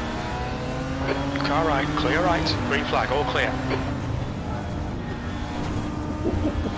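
A racing car engine drones steadily at high revs.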